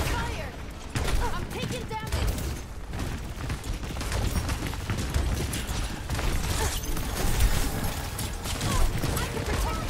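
Rapid gunfire crackles with energy blasts.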